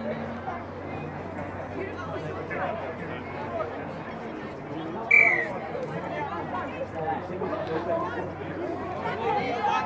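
Young women shout and call to each other across an open field outdoors.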